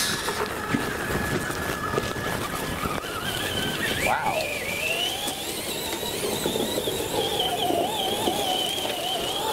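Snow sprays and hisses under the car's wheels.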